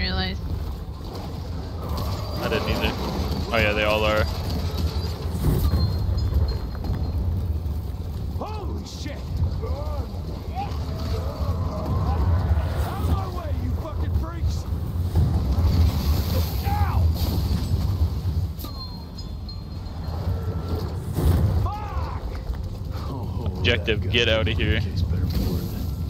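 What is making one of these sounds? A low rumble of fire and battle hums steadily.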